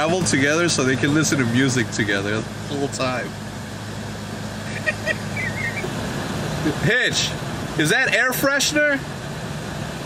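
A young man laughs, muffled behind a car window.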